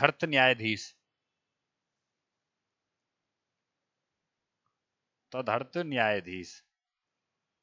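A young man speaks with animation through a headset microphone, in short bursts.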